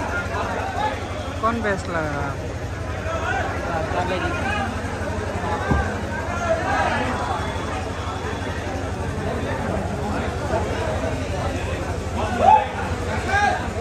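A crowd of men chatters and calls out in a large echoing hall.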